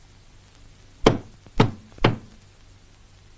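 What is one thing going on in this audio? A fist knocks three times loudly on a wooden door.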